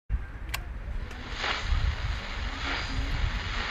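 Fingers click and turn a knob on a small radio.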